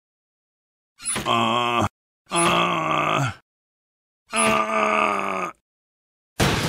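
A cartoon man cries out loudly in strained bursts.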